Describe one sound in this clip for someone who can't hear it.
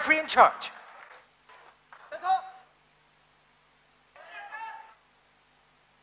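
A man announces through a microphone and loudspeakers in a large hall.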